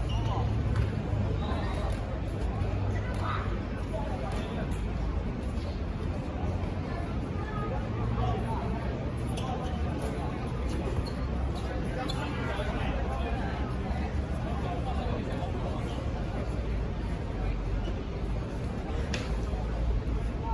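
Sneakers squeak and patter on a hard court.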